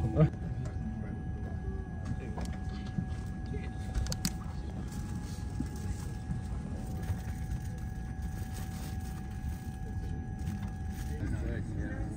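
A plastic wrapper crinkles in a hand.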